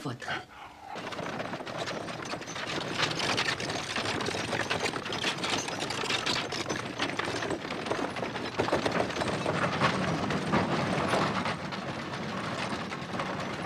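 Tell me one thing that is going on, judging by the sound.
Horse hooves clop on a road.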